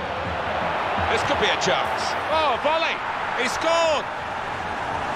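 A stadium crowd cheers loudly after a goal.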